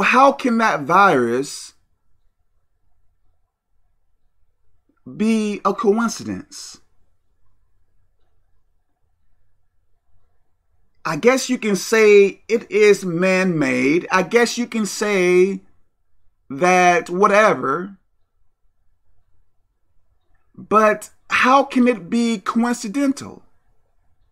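A middle-aged man speaks with animation close to a microphone, in bursts with pauses.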